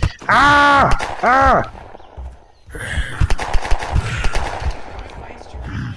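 Gunshots ring out one after another.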